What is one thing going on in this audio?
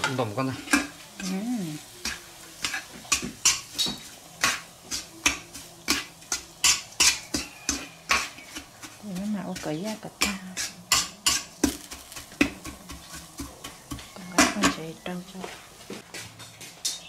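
A metal spatula scrapes and knocks against a metal pot.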